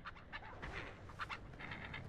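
Tall dry grass rustles as someone pushes through it.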